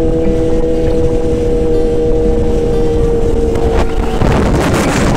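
Wind rushes and buffets loudly.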